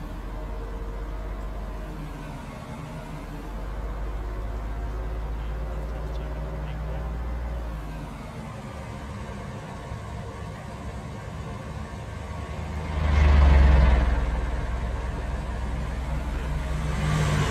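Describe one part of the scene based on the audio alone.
A car engine hums steadily and rises and falls with speed.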